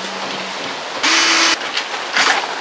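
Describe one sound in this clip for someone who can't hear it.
A cordless drill whirs briefly.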